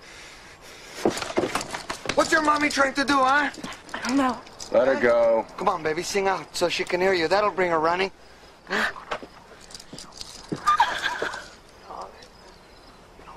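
A woman cries out in distress, sobbing loudly.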